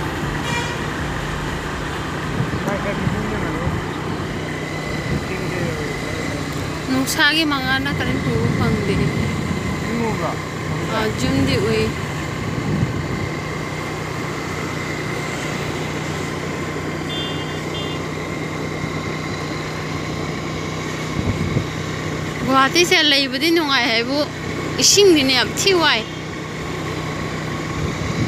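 A vehicle engine hums steadily while riding along.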